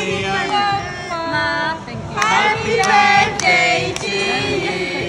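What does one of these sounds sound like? A group of women and girls sing together close by.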